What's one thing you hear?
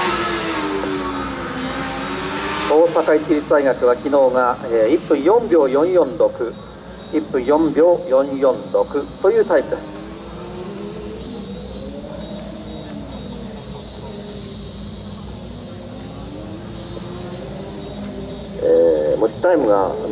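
Motorcycle engines rev up and down across an open track, rising and falling in pitch.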